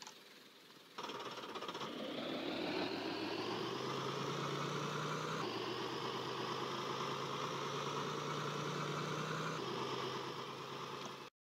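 A bus engine starts up and revs, rising in pitch as it pulls away.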